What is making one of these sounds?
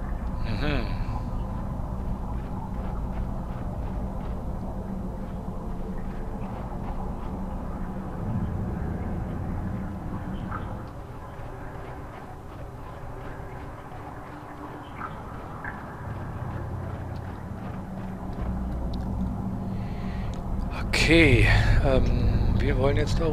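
Footsteps crunch slowly over rock.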